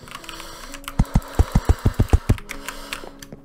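Wooden blocks are placed with a quick run of knocks.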